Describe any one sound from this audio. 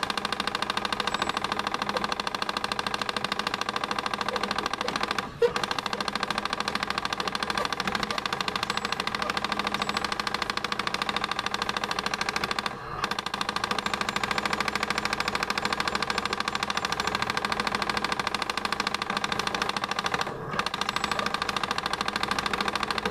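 Rapid electronic gunfire rattles from an arcade game.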